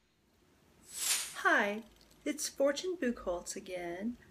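A young woman speaks to the listener with animation, close by.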